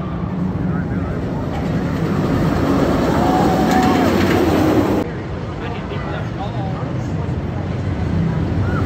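A wooden roller coaster train rumbles and clatters along its track.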